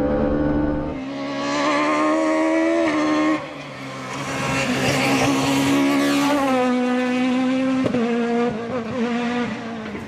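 A rally car engine revs hard as the car races past outdoors and fades away.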